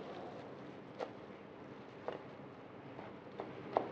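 A knife chops on a cutting board with sharp knocks.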